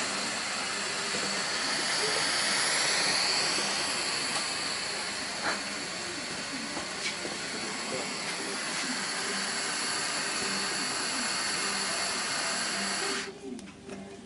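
A gas torch flame hisses and roars steadily.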